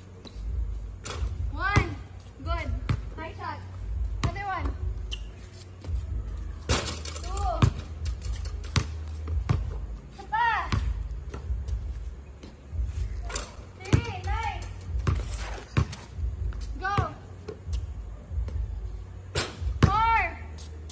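A basketball bounces on a hard court with sharp thuds.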